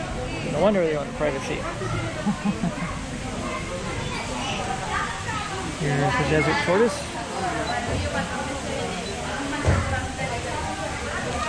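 Young children talk excitedly nearby.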